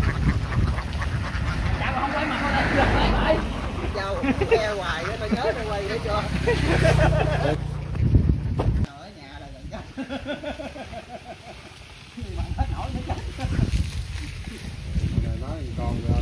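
Men talk outdoors.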